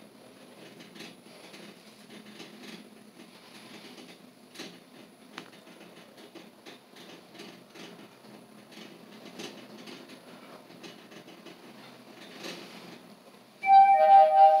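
An elevator hums and rattles softly as it rises.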